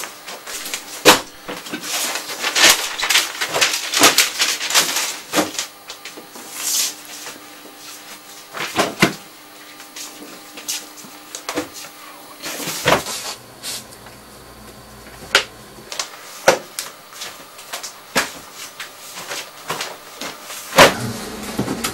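Paper rustles and thumps as bundles of newspapers are handled.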